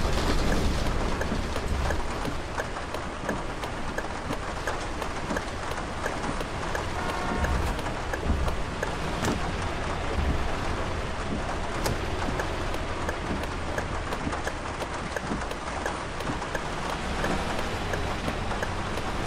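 A bus bumps and rattles over a rough dirt road.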